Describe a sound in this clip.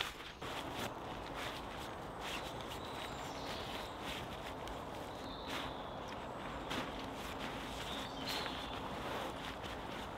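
A man folds and smooths a canvas tent, the cloth rustling.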